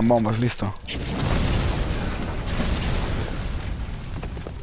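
A burst of flame whooshes and roars, then crackles as it burns.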